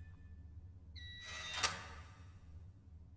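A metal locker door clanks open.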